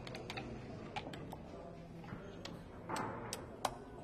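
Game pieces click and slide on a wooden board.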